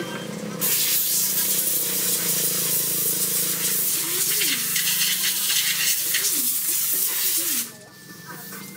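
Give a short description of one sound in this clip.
Compressed air hisses loudly from a spray gun.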